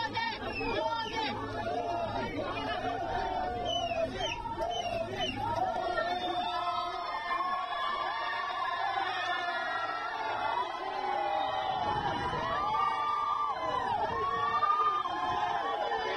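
A large crowd of men and women cheers and chants loudly outdoors.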